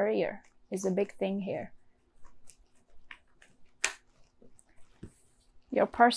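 Playing cards flick and slap softly as they are shuffled by hand.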